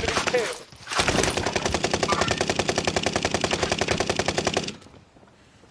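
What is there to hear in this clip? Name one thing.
A rifle fires rapidly in a long burst.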